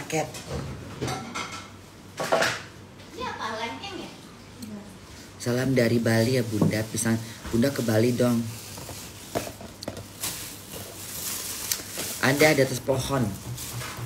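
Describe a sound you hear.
A woman talks calmly and close by.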